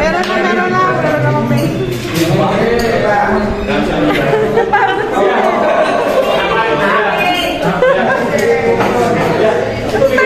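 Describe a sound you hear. Several young men talk and chatter nearby, in a busy room.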